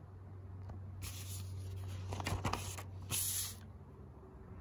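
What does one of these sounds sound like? Paper pages rustle and flip as they are turned by hand.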